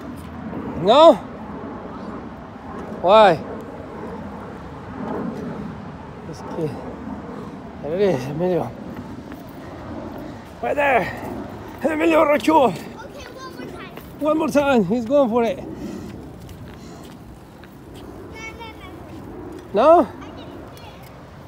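Bicycle tyres roll over wet concrete.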